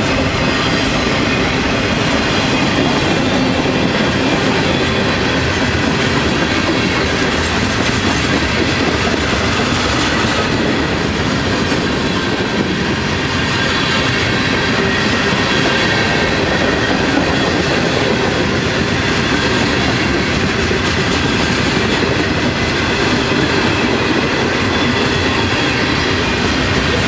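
A long freight train rumbles past close by, wheels clattering and squealing on the rails.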